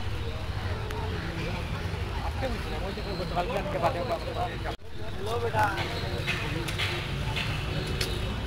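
Men talk nearby in a busy street crowd.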